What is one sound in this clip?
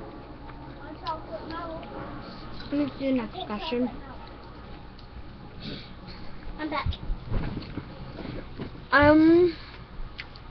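A young girl talks close to a microphone, with animation.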